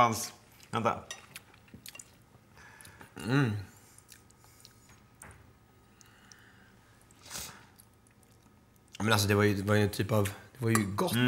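A fork scrapes and clinks against a plate.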